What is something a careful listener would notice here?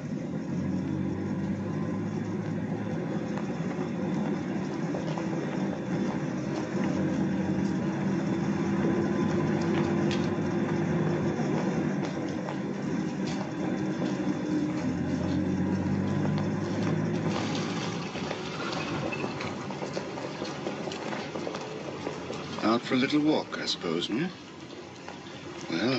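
Rain falls steadily on a street.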